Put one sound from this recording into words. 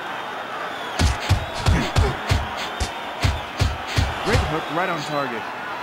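Boxing gloves thud in quick punches.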